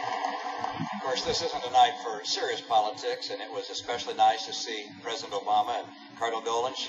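A middle-aged man speaks calmly into a microphone, heard through a small loudspeaker.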